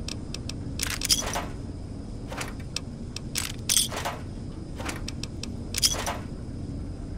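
Short clicks and rattles sound as items are picked up.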